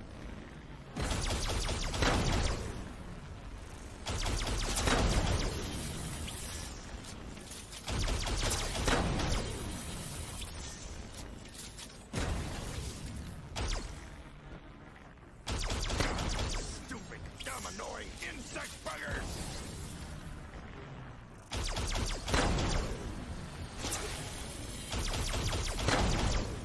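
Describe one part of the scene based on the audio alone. Energy blasts boom and crackle in loud bursts.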